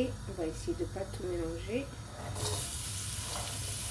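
Chopped onion drops into a hot pan.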